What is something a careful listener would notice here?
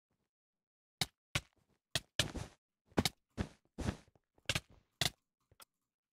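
Blocks knock softly in quick succession as they are placed.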